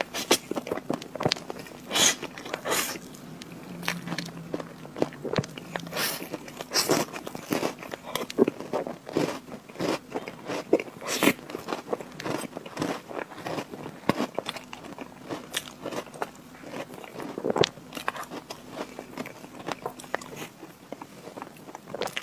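A young woman chews and smacks soft chocolate cake close to a microphone.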